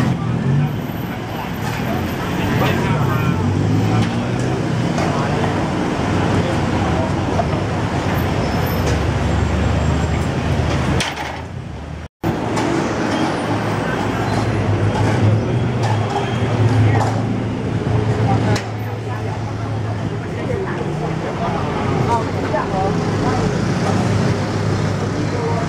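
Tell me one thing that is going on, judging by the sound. Traffic rumbles steadily along a busy street.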